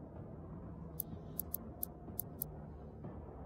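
Short, sharp menu clicks tick several times in quick succession.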